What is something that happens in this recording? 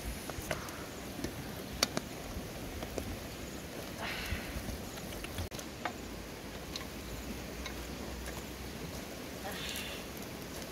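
Stew bubbles and sizzles in a pot over a fire.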